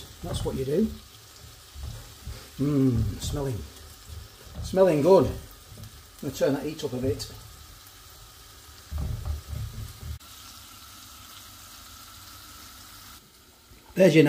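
Food sizzles softly in a frying pan.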